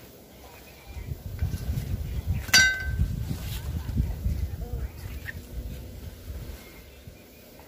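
Large leaves rustle and swish as they are handled.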